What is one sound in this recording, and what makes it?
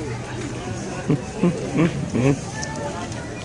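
A pig grunts and squeals loudly.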